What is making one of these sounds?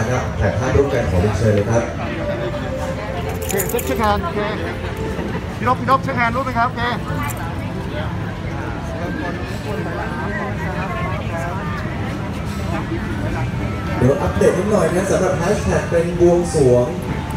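Several men and women talk and chatter nearby, outdoors.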